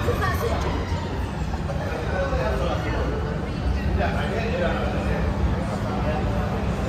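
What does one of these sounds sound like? Men talk casually nearby in an echoing passage.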